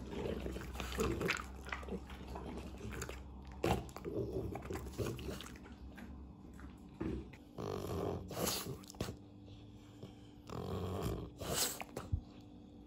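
A small dog gives short whines and grumbles close by.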